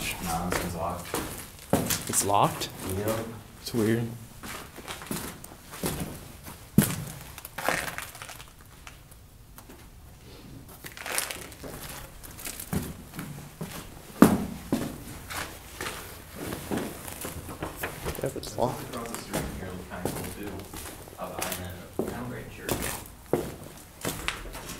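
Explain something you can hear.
Footsteps crunch over broken debris on a hard floor.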